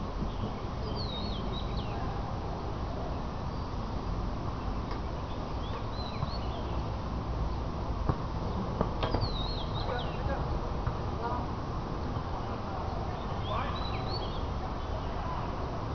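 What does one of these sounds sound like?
Wind blows steadily across an open field outdoors.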